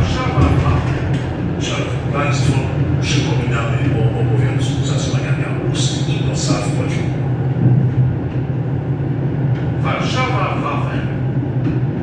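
Train wheels clatter and squeal over rail joints and switches.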